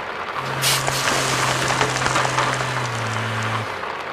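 Gravel rattles and crunches as it pours from a tipping truck.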